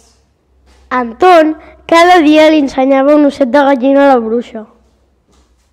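Another young girl speaks loudly and with animation.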